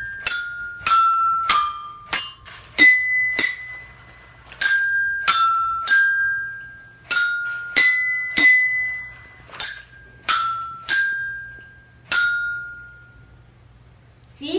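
A toy robot strikes xylophone bars, playing a simple tune of bright ringing notes.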